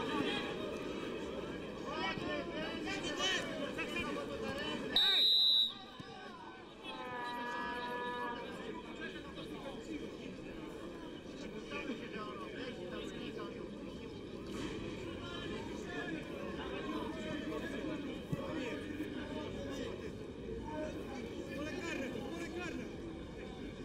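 A stadium crowd murmurs and chants outdoors.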